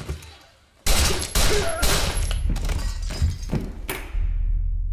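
Loud gunshots fire in quick bursts indoors.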